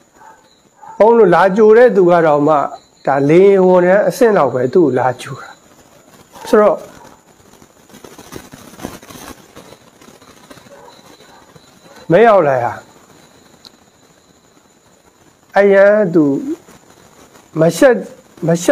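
A man speaks calmly into a microphone, in bursts with pauses.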